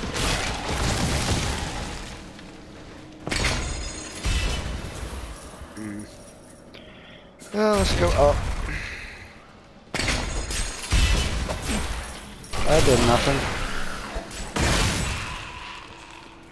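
Game weapons strike and slash with heavy impacts.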